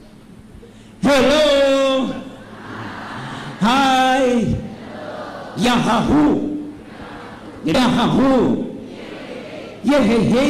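A man sings a chant in short phrases through a microphone, heard over loudspeakers outdoors.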